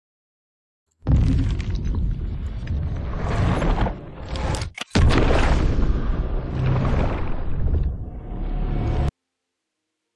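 Loud, dramatic music with a booming swell plays.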